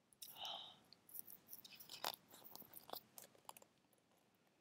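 Book pages rustle as they are turned.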